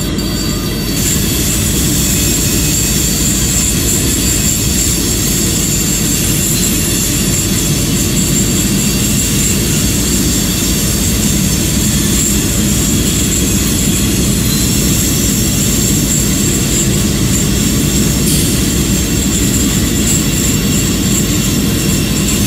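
Train wheels clatter and hum along the rails.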